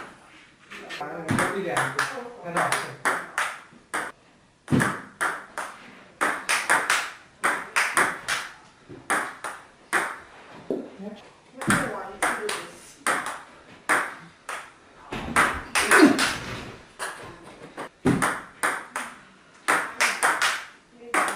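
A table tennis ball bounces on a table.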